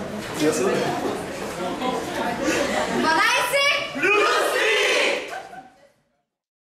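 A group of young men and women chant together loudly in an echoing hall.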